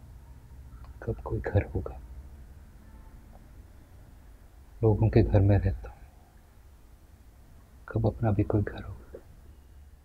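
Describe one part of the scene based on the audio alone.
A young man speaks quietly and wistfully, close by.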